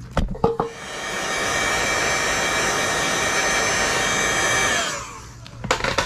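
Air hisses steadily through a hose.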